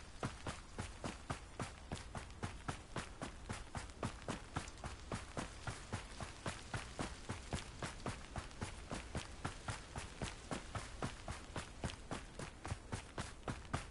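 Quick running footsteps crunch on snow.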